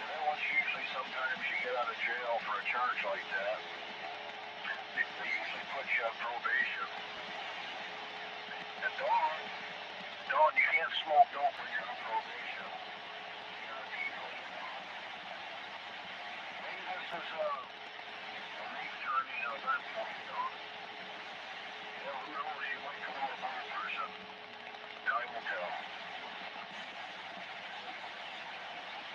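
A radio loudspeaker hisses with steady static.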